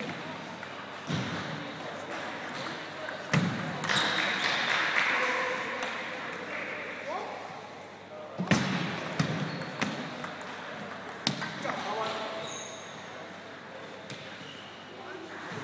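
Shoes squeak on a hard floor in a large echoing hall.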